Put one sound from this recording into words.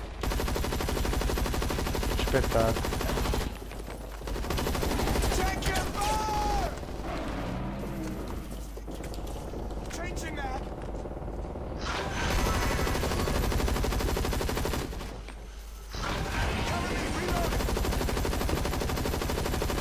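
A young man with a headset talks into a microphone with animation.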